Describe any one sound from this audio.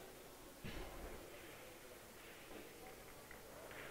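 A cue strikes a billiard ball.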